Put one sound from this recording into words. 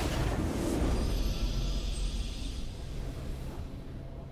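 A triumphant video game fanfare plays and fades.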